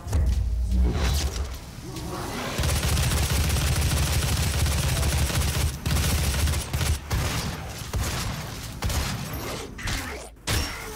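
A heavy gun fires in rapid bursts with loud, booming blasts.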